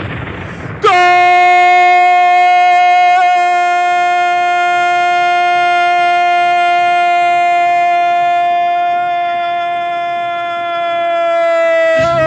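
A man shouts a long, drawn-out goal call into a microphone, holding one steady note.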